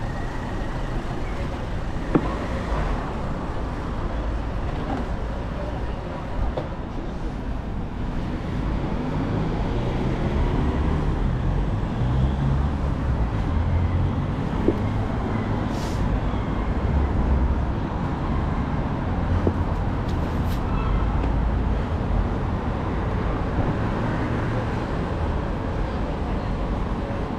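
Cars drive along a city street.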